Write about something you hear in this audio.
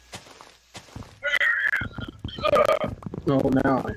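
A wooden block breaks with a short crack.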